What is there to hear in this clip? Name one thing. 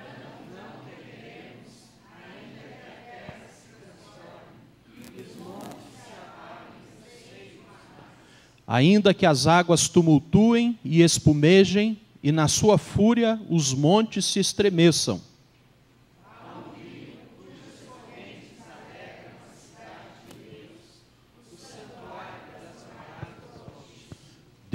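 A middle-aged man reads aloud calmly through a microphone in a large echoing hall.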